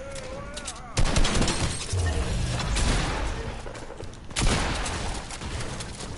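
Gunfire bursts out loudly and briefly.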